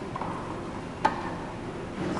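A tennis ball is struck sharply with a racket in an echoing indoor hall.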